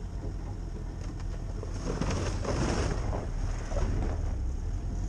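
Tall grass brushes and swishes against the front of a vehicle.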